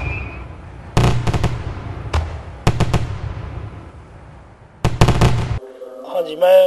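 Fireworks burst with loud cracks and bangs.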